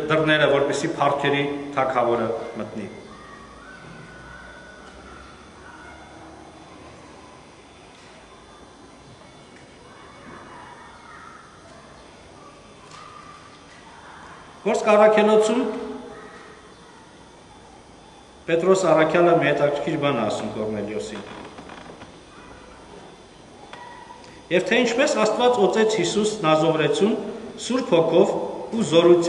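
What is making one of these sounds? A man speaks calmly and slowly, close by, with long pauses.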